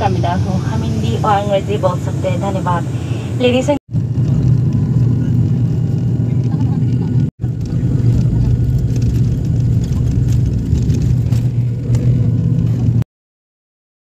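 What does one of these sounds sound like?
Airplane engines drone loudly and steadily.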